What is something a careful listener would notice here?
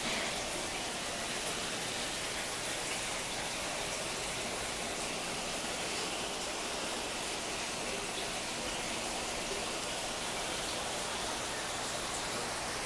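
Air bubbles gurgle and fizz steadily in water.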